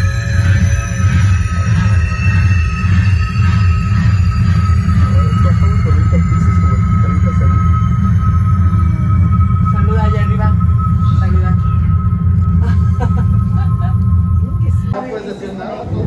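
An elevator hums loudly and steadily as it moves.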